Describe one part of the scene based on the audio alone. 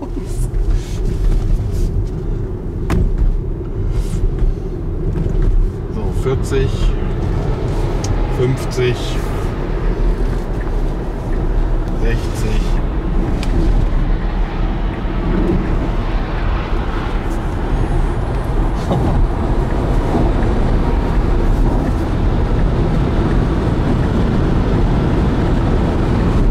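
A car engine hums steadily, heard from inside the car.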